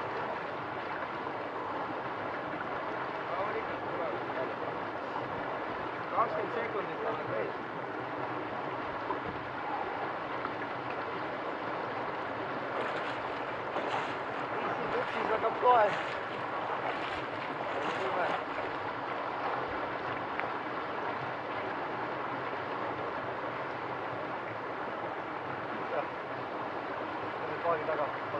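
A river flows and rushes steadily nearby.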